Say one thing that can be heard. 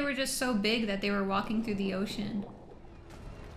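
A young woman speaks with animation, close to a microphone.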